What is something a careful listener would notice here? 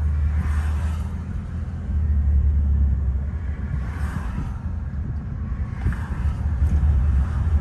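Passing vehicles whoosh by on a highway.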